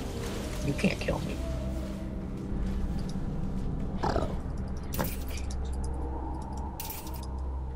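Short magical zaps and hits from a game ring out now and then.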